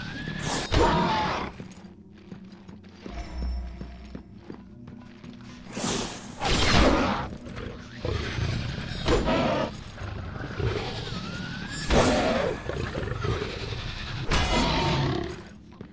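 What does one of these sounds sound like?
A creature screeches and roars.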